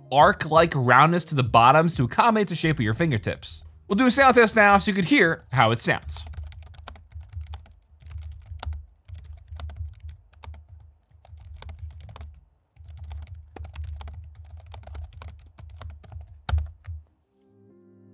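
Fingers tap quickly on a laptop keyboard with soft clicks.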